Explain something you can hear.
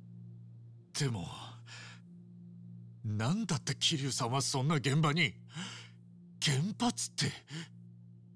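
A young man speaks in surprise, close by.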